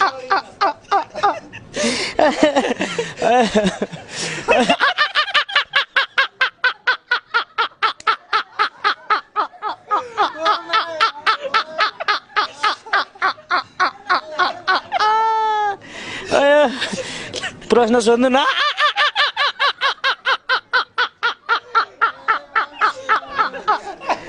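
Another young man laughs heartily nearby.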